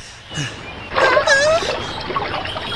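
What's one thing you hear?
A young woman cries out in surprise.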